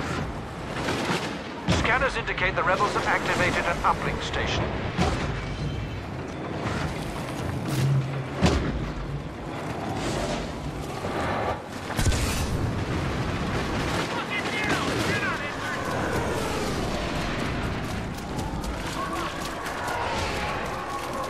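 Boots run on hard ground.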